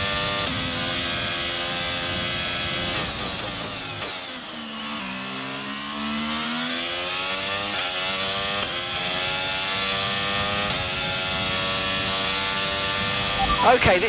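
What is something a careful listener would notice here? A racing car engine screams at high revs, dropping in pitch while braking into a corner and rising again as it speeds up through the gears.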